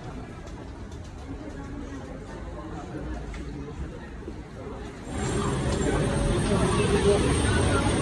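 Footsteps shuffle along a hard floor.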